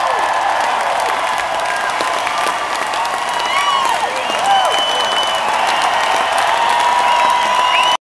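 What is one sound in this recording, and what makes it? A large crowd cheers and screams loudly in a huge echoing arena.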